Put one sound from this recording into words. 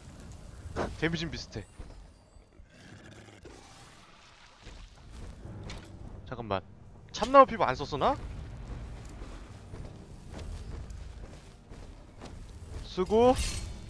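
A spell crackles and whooshes.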